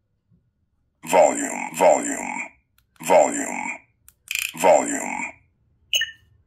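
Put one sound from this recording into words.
A toy lightsaber hilt plays short electronic sound effects through a small speaker.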